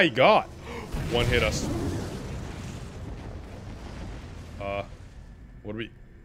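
A deep, rumbling whoosh swells and slowly fades.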